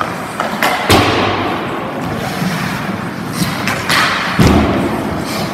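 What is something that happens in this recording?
A hockey puck smacks against a goalie's pads.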